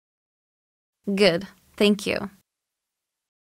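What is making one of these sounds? A man speaks calmly and politely.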